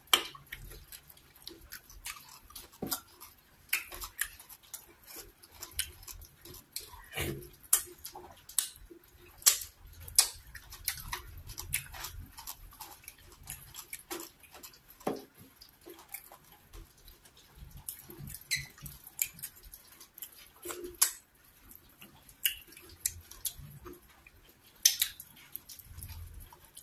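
Wet, sticky food squelches as fingers tear it apart.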